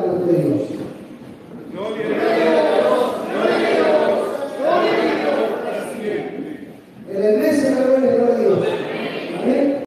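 A crowd of men and women sings together loudly in an echoing hall.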